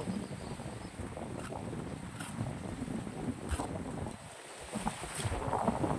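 A knife cuts into coconut husk.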